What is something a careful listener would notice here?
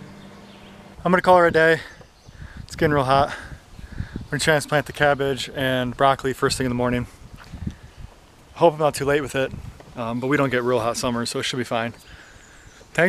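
A man talks with animation close to the microphone, outdoors.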